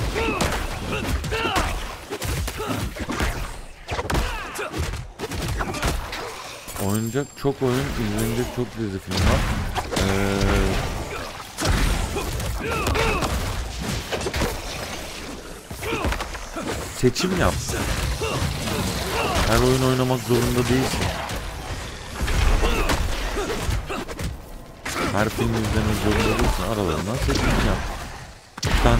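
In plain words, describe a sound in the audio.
Game spells and weapons clash and crackle in bursts.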